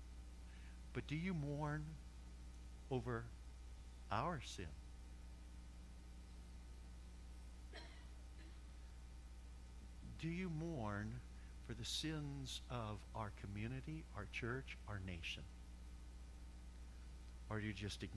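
A middle-aged man speaks with feeling through a microphone, pausing between phrases.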